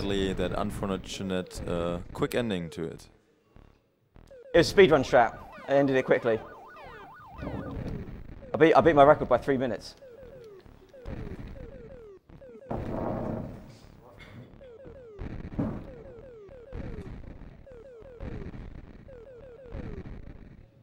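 Short falling electronic zaps repeat quickly.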